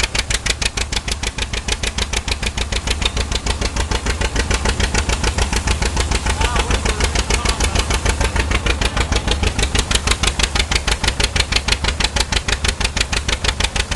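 An old two-cylinder tractor engine chugs loudly and steadily close by.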